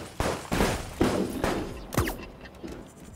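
Glass shatters loudly.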